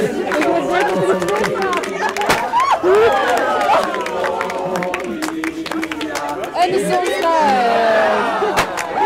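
A crowd claps its hands.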